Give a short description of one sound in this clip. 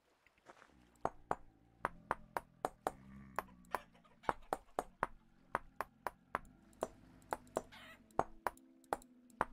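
Short sharp clicks sound one after another as blocks are placed.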